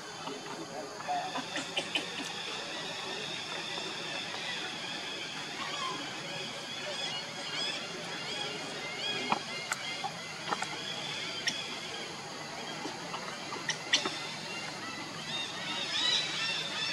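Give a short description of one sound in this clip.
A baby monkey squeaks and whimpers in high, thin cries.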